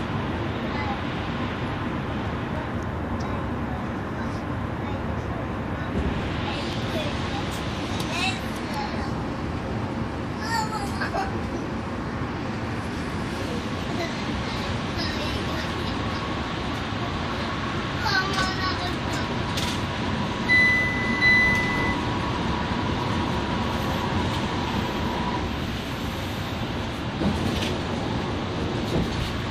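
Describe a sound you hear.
Tyres roll with a steady rumble on the road.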